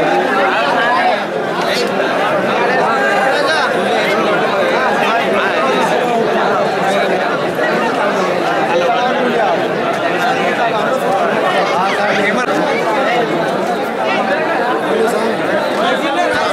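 A large crowd of men chatter and call out loudly all around.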